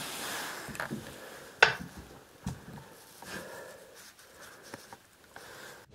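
Something knocks and scrapes as a man handles it.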